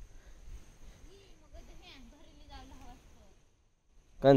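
A child talks quietly in the distance.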